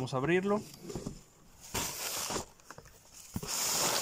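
A cardboard box lid is lifted open.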